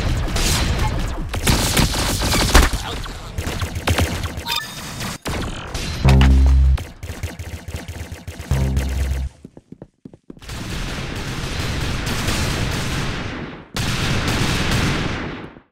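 Laser guns fire in quick shots.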